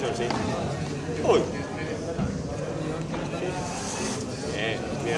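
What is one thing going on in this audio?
A young man speaks calmly and close by, in a large echoing hall.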